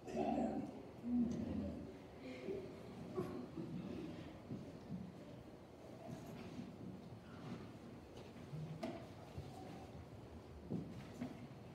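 People murmur quietly in the room.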